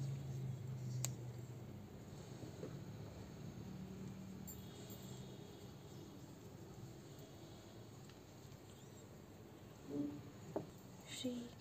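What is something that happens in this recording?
A small metal figurine clinks softly as hands rub and turn it.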